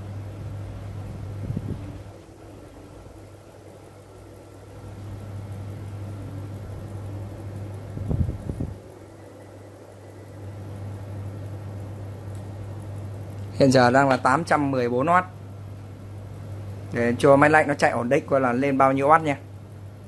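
An electric device hums steadily at a low pitch.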